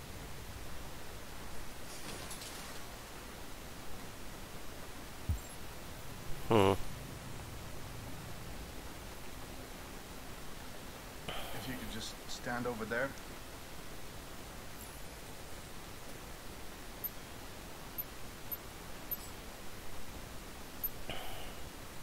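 Footsteps tap softly on a hard floor.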